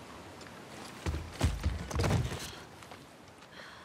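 A young woman groans loudly in pain.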